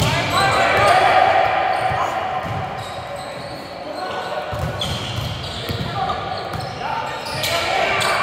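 Sneakers squeak on a gym floor in a large echoing hall.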